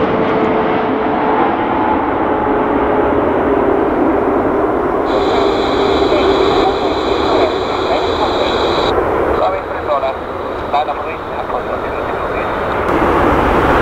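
A jet airliner roars loudly as it lands.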